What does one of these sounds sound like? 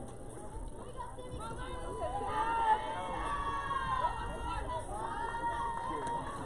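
Young women shout and chant encouragement from across an open field.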